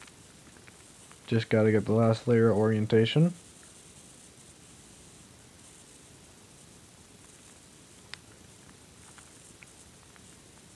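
Plastic puzzle cube pieces click softly as a cube is turned quickly.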